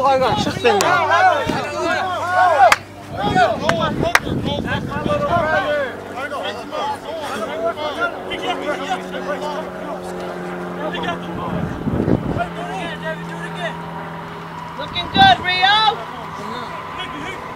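Young men shout and cheer loudly close by, outdoors.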